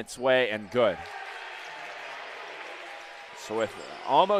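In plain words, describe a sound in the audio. A crowd in a large echoing gym cheers loudly.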